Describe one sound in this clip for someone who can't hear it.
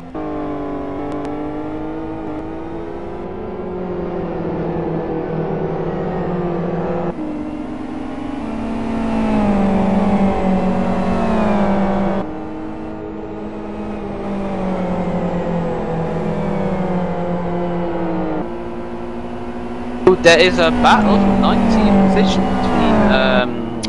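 Racing car engines roar loudly, rising and falling in pitch as they shift gears.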